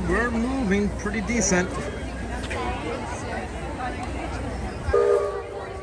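A crowd of people chatters and murmurs outdoors.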